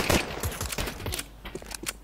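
A pistol magazine clicks out and snaps back in.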